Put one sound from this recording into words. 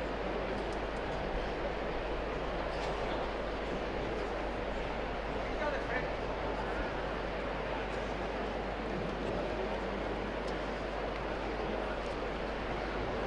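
A large crowd murmurs steadily outdoors.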